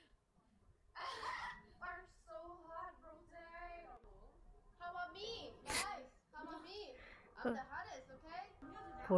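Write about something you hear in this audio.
Young women talk and laugh together.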